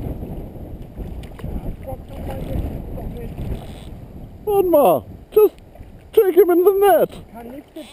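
A fish splashes in the water as it is netted.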